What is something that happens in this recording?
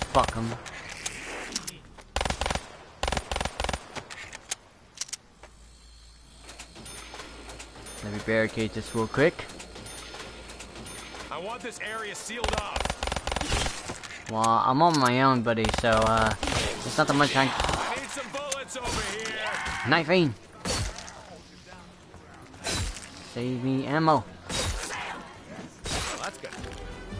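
Gunshots fire in short, quick bursts.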